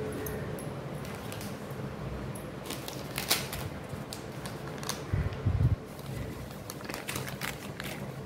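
Foil wrappers crinkle and rustle as a hand handles them.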